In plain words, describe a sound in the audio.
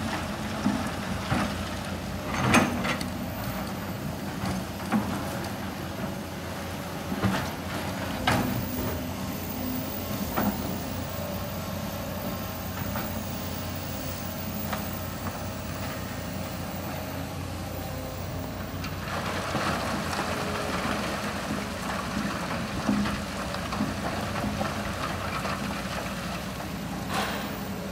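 Excavator engines rumble steadily nearby.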